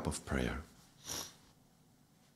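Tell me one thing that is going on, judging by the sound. A man breathes out slowly.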